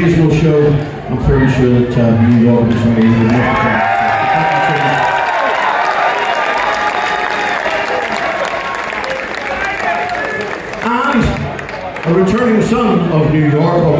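A rock band plays loudly with electric guitars and drums in a large hall.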